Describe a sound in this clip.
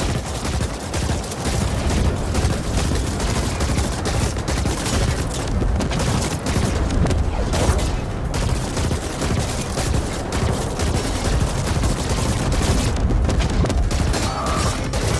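Gunfire and laser blasts crackle rapidly.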